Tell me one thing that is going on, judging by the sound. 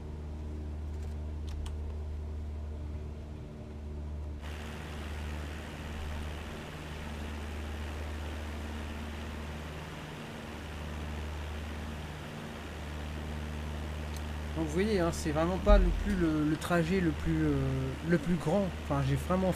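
A steady light-aircraft engine drones.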